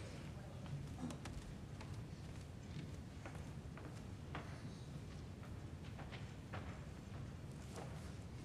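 Footsteps pad softly across a carpeted floor.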